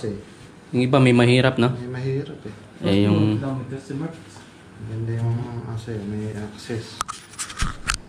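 A middle-aged man talks close by with animation.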